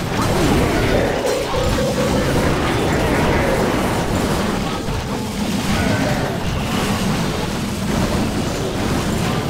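Explosions boom and crackle amid the clash of battle.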